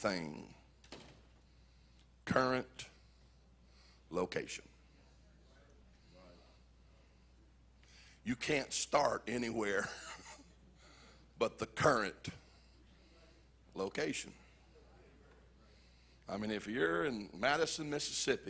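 An older man speaks with animation into a microphone over loudspeakers, in a large echoing hall, with long pauses.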